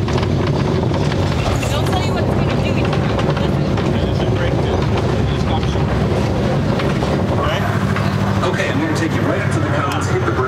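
A ride vehicle rumbles loudly along a track.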